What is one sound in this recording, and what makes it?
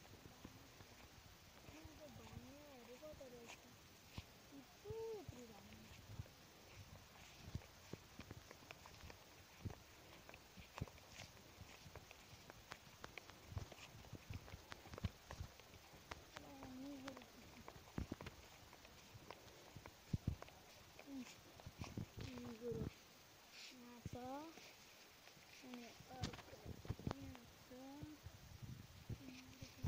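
Footsteps crunch and rustle on dry grass and stubble.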